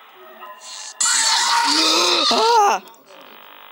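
A loud electronic shriek blares suddenly.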